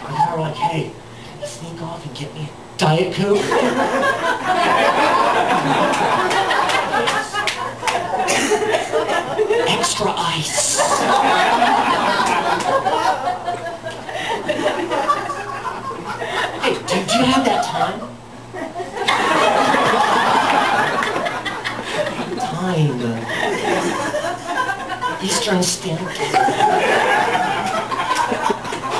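A middle-aged man speaks with animation into a microphone, heard through a loudspeaker in a small room.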